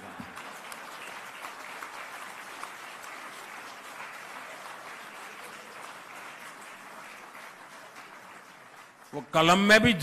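A large crowd applauds in a big hall.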